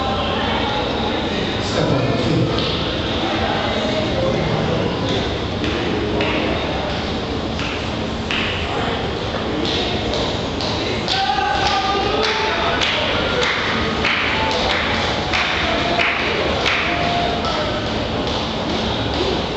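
A large crowd sings together in a large echoing hall.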